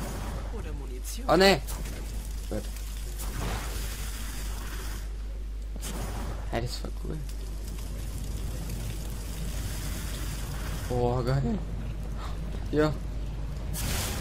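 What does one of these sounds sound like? Flames crackle and roar close by.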